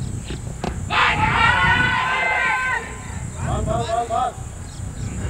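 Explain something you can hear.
Young men shout an appeal across an open field.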